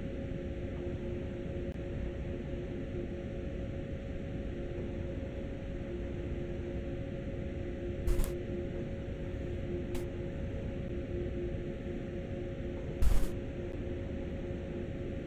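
A train's engine hums steadily.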